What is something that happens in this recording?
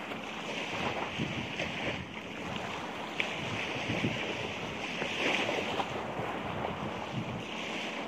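A plastic bag crinkles and rustles in the wind.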